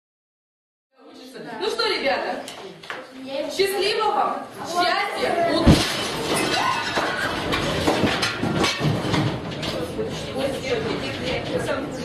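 Children talk and murmur nearby.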